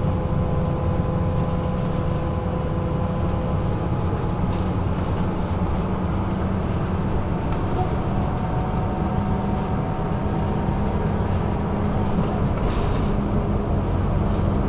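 A vehicle's engine hums and rumbles steadily from inside as it drives along.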